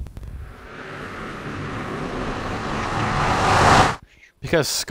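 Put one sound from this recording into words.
A magical whooshing hum swells and grows louder, then cuts off.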